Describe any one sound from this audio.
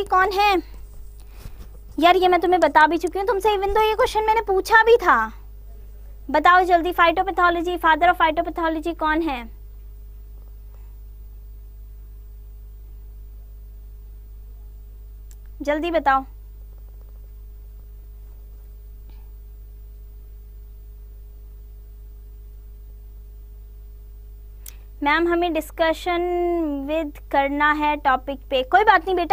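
A young woman speaks with animation into a close microphone, pausing now and then.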